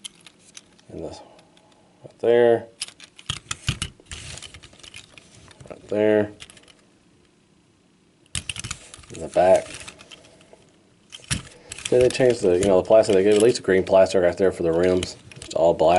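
Small plastic toys click and rattle as they are handled.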